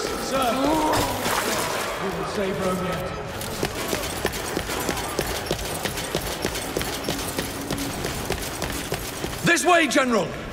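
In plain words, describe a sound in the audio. Heavy footsteps tread on stone.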